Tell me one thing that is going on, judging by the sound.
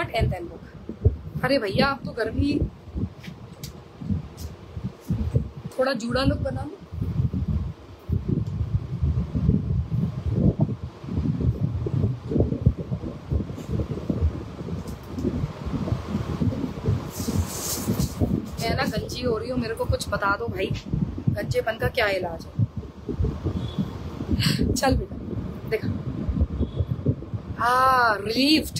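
A young woman speaks with animation close by.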